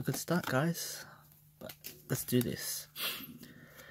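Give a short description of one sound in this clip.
Playing cards slide and flick against each other.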